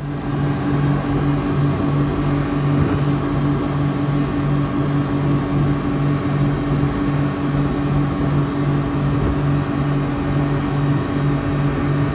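Water rushes against a moving boat's hull.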